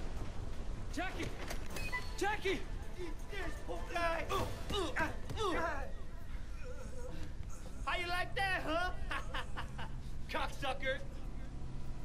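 A man speaks angrily and taunts, close by.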